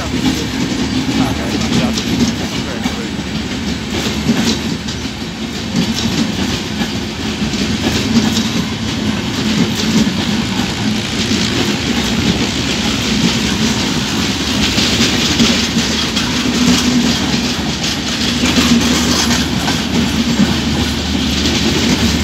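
A passenger train rumbles past close by, its wheels clattering rhythmically over the rail joints.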